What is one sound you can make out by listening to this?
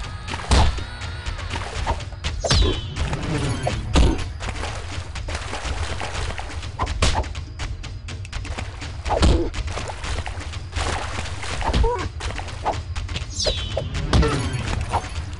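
Heavy thuds and impacts land again and again in a fight.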